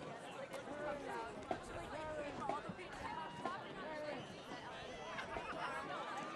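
A large crowd cheers and shouts in an open-air stadium.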